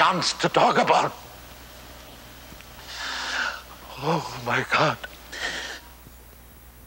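An elderly man speaks with emotion.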